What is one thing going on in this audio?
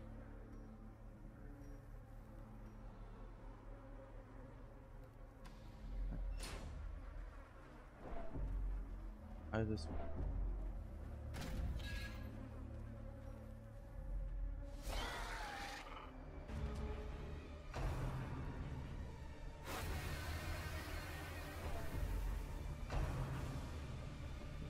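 Dark, low music drones steadily.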